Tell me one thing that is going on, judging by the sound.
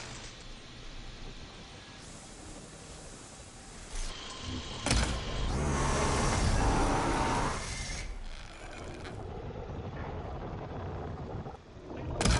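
A large mechanical beast growls and clanks nearby.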